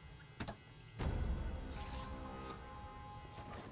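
A chest creaks open with a chiming sparkle.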